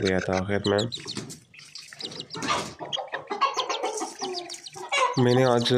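Chicks peep in high, rapid chirps.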